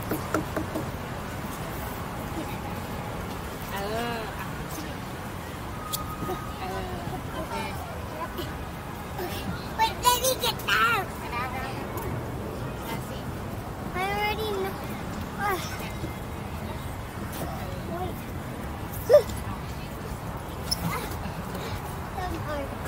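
Young children call out and chatter nearby.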